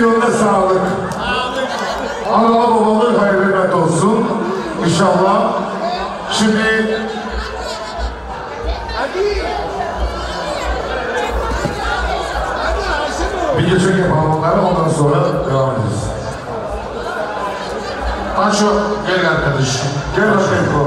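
A crowd of men and women talk and shout loudly all at once, close by.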